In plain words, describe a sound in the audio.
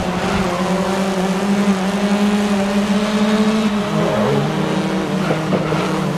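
Other racing car engines whine nearby as cars pass.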